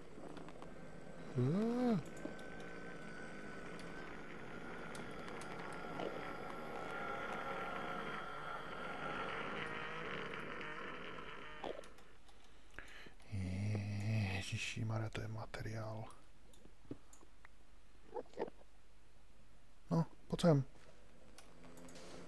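Lava bubbles and pops nearby.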